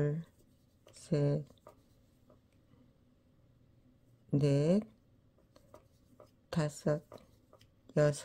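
A crochet hook pulls yarn through stitches.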